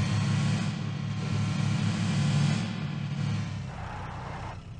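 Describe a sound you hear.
A jeep engine roars as the vehicle drives over rough ground.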